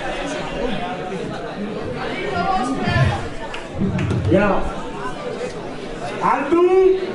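A crowd of young people shouts and cheers loudly.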